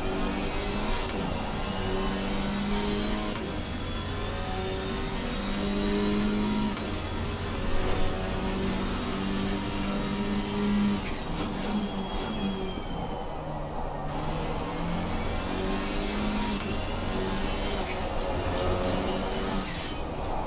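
A racing car engine roars, revving up through the gears and dropping as the car brakes.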